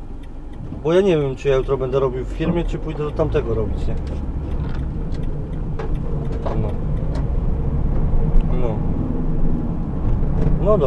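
A vehicle engine rumbles low and steadily as it drives along.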